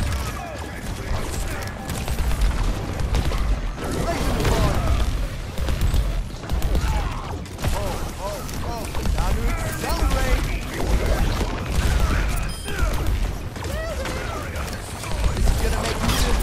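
Energy weapons fire in rapid bursts.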